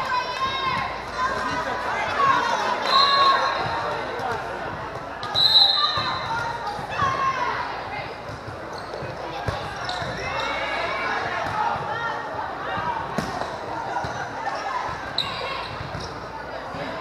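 Young women and girls on a volleyball team shout and call out to each other in a large echoing hall.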